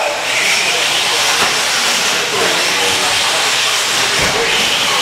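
Radio-controlled short course trucks whine around a dirt track.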